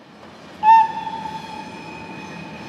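An electric locomotive sounds its horn.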